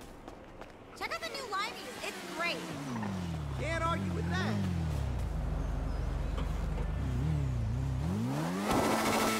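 A quad bike engine revs up and down.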